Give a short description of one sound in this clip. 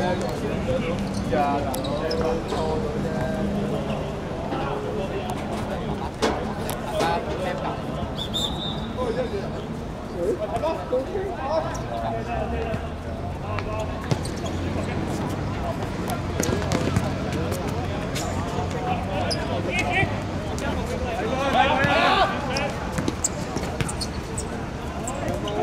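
Shoes scuff and patter on a hard court.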